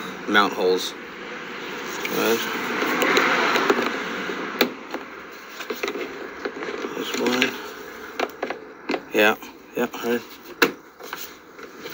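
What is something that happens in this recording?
A screwdriver taps and scrapes against hard plastic.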